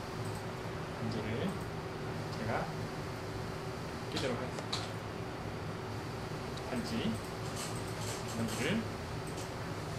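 A young man speaks calmly and close by, in short bursts.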